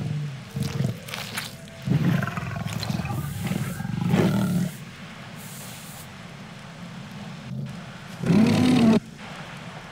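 A young man talks through a microphone with animation.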